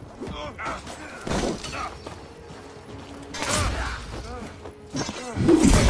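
Swords and axes clash and strike in a melee.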